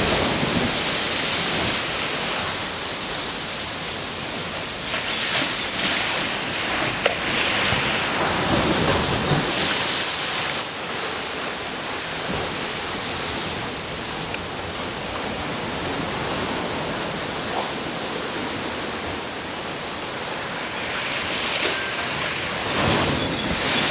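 Waves wash and break steadily on a shore outdoors.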